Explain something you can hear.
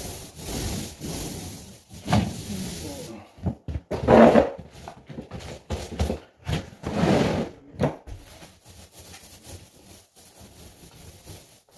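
A paint roller rolls softly across a wall.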